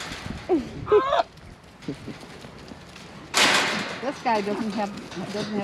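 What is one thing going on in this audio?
Goats bleat close by.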